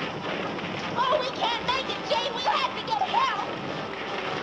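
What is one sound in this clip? A woman cries out in distress, high and shrill.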